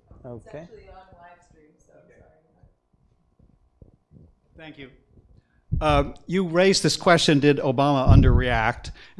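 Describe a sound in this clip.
A middle-aged man speaks into a microphone, quietly at first and then loudly and with animation.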